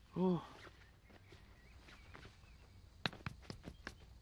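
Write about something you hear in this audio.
Plant stems snap and crackle in a young man's hands.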